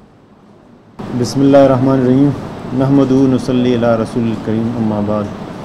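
A man speaks steadily into a microphone over a loudspeaker.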